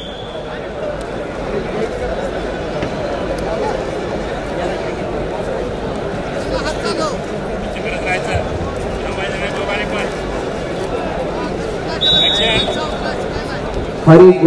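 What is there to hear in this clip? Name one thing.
A crowd murmurs and chatters in a large open arena.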